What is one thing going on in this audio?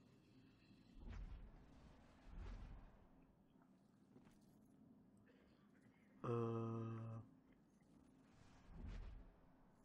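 Slow footsteps thud on wooden boards.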